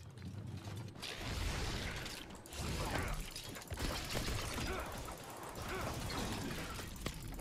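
A sword slashes and clangs against metal.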